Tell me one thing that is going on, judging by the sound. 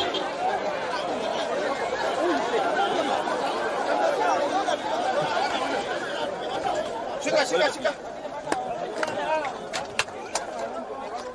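A large crowd of people shouts and chatters loudly close by.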